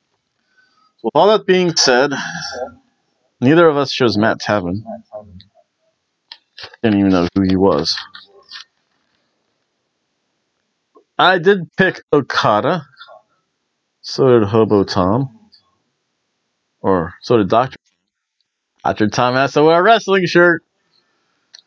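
A middle-aged man speaks close to a microphone, in short animated bursts with pauses.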